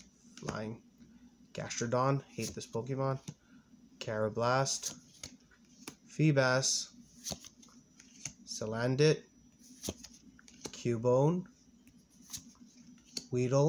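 Stiff playing cards rustle and flick as a hand flips through them one by one.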